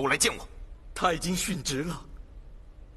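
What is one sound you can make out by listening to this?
A young man answers in a steady voice.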